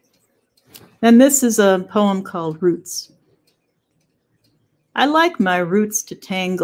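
An elderly woman speaks calmly through an online call, pausing between phrases.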